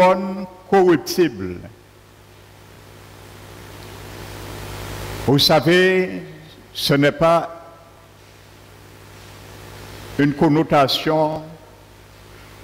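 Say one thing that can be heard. A middle-aged man speaks slowly and deliberately through a headset microphone, with long pauses.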